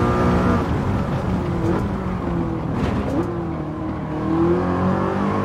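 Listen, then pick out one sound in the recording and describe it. A car engine drops in pitch as the car brakes for a corner, with quick blips on the downshifts.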